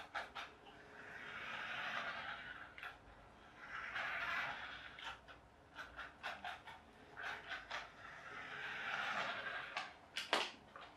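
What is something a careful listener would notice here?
A toy car's electric motor whirs in bursts as it drives over a hard floor.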